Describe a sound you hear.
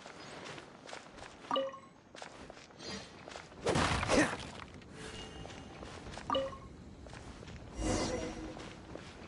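Footsteps run across sand.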